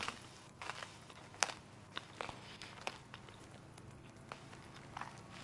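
Grass rustles as a soldier crawls through it.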